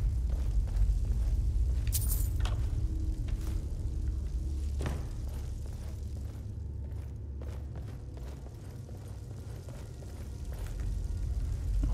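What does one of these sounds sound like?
Footsteps crunch on stone and grit.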